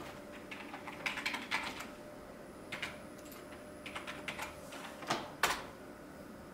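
Keyboard keys click a few times, close by.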